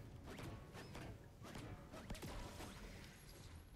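A heavy hammer strikes wood with sharp, quick blows.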